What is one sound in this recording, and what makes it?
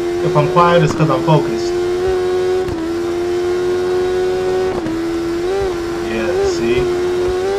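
A motorcycle engine screams at high revs, shifting gears as it speeds up.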